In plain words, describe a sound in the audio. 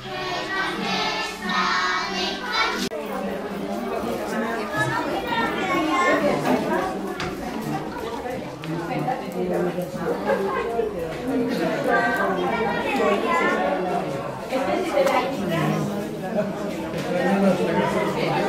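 A group of young children sing together in a lively chorus.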